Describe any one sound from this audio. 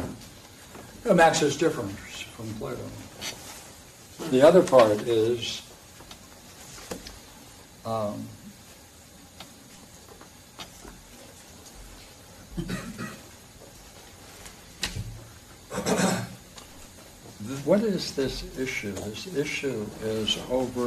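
An elderly man speaks slowly with pauses in a room with a slight echo.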